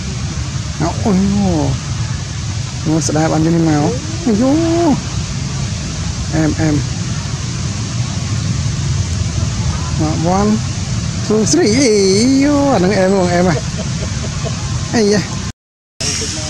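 A baby monkey cries out in shrill, wavering squeals close by.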